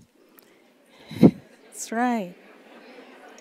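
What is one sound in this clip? A woman laughs into a microphone.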